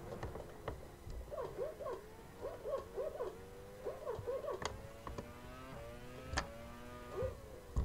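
A racing car engine whines high and revs up through the gears.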